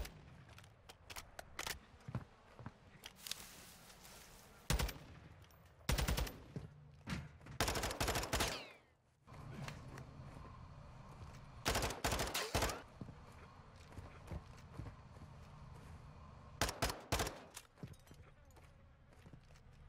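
Footsteps tap quickly across hard floors.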